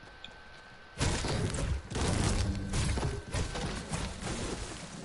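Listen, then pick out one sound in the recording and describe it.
A pickaxe strikes wood with repeated sharp thuds.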